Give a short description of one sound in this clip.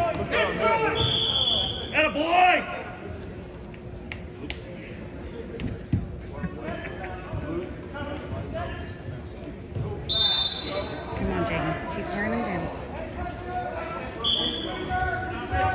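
A referee blows short, sharp whistle blasts.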